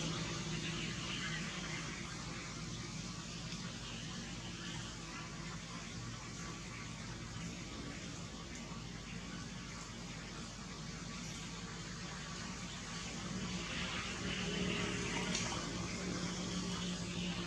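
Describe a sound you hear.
Leaves and branches rustle as monkeys climb through a tree.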